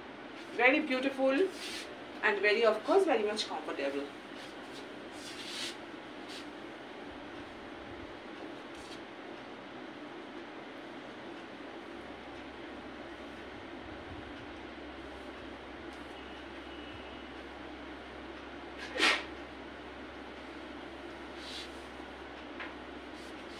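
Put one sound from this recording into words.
Cloth rustles as fabric is folded and draped.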